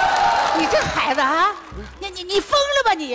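An older woman speaks loudly and angrily through a headset microphone.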